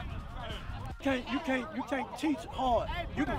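A man shouts loudly up close.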